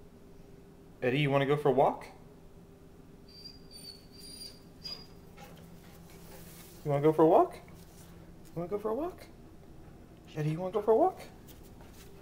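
A dog whines and howls in short, rising bursts close by.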